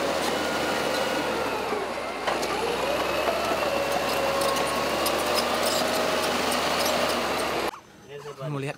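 Steel crawler tracks clank and squeal as they turn.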